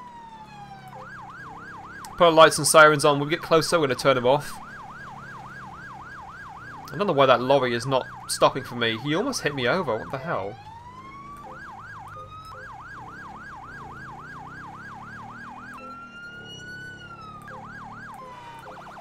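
A siren wails in fast, repeated sweeps.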